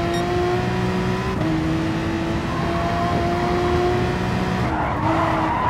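A racing car engine roars at high revs, dropping in pitch as it shifts gears.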